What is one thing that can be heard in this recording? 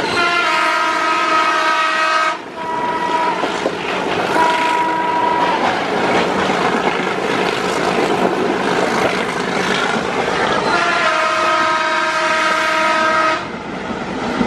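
A train horn blows loudly, twice.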